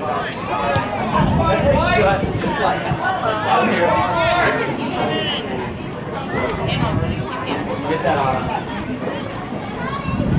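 A crowd of spectators shouts and cheers from a distance outdoors.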